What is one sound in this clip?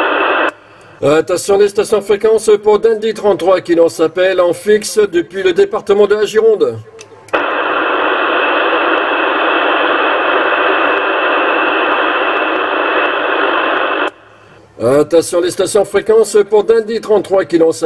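A middle-aged man speaks with animation into a radio microphone.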